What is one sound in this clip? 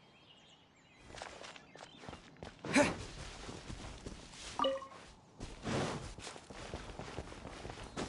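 Quick footsteps run through grass and over stone.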